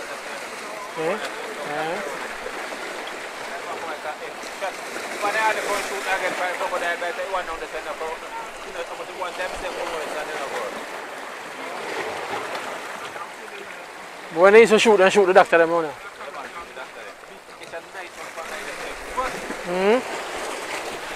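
A man talks loudly nearby, with animation.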